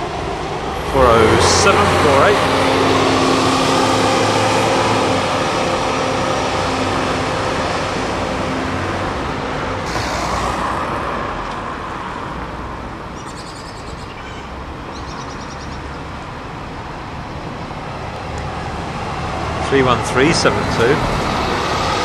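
Bus brakes squeal briefly.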